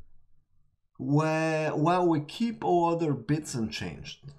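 A young man speaks with animation into a close microphone.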